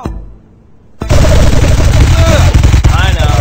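Paintball guns fire in rapid bursts.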